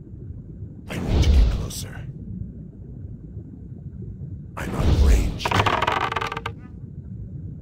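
Blows and bursts of magic strike.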